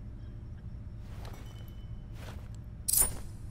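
A spinning blade whooshes through the air.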